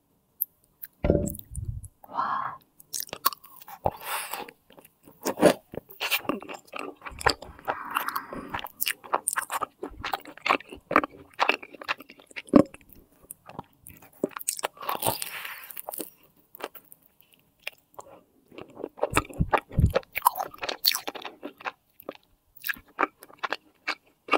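A young woman chews soft pastry close to a microphone, with wet smacking sounds.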